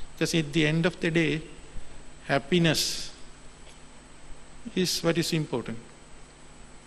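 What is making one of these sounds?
A middle-aged man speaks calmly into a microphone, heard over loudspeakers in a large hall.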